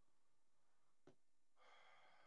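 A small plastic device knocks softly as a hand picks it up from a table.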